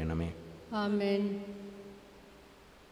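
A man chants a short phrase through a microphone, echoing slightly in a large hall.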